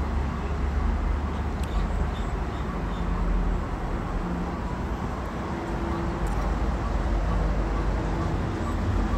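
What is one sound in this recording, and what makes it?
Road traffic rumbles on an elevated highway.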